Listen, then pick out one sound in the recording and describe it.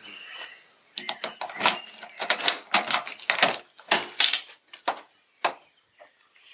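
A car door handle clicks.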